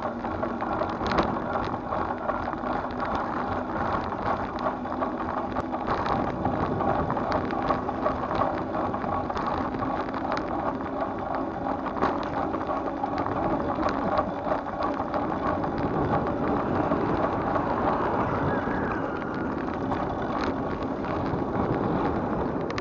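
Wind rushes steadily past outdoors.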